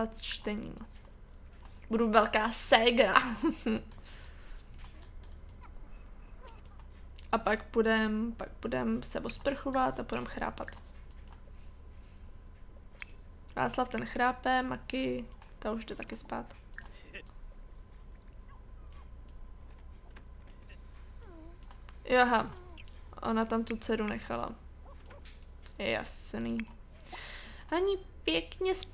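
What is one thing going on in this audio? A young woman talks casually into a close microphone, in short bursts with pauses.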